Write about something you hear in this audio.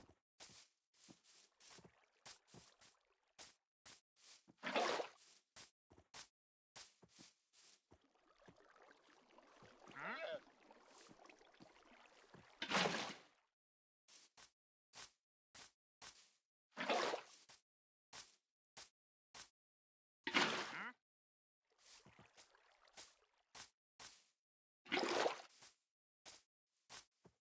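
Footsteps crunch on grass at a steady walking pace.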